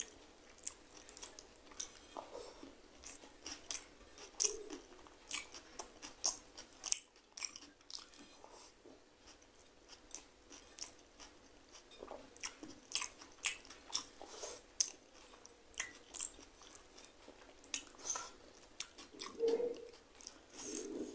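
A man chews and smacks his lips loudly, close to a microphone.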